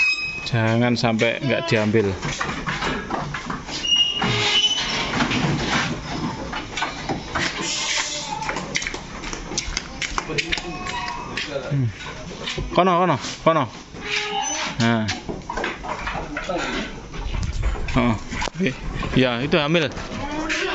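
Goats bleat loudly and repeatedly, close by.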